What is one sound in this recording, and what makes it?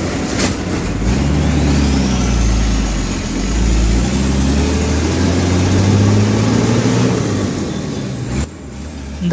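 A bus engine revs up and down as gears change.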